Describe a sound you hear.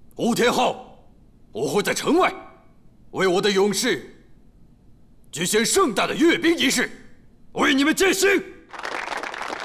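A man speaks loudly and firmly, close by.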